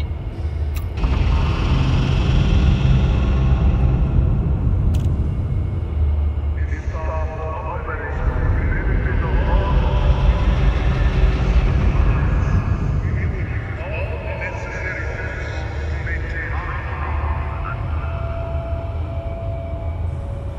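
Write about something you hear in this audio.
A spacecraft engine hums with a deep, steady rumble.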